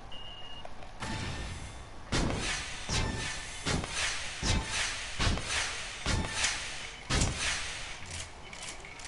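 A heavy gun fires bursts of loud shots.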